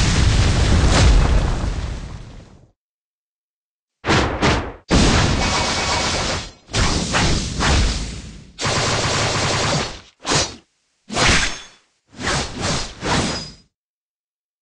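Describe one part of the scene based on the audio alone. Sword slashes and impacts crash in sharp bursts.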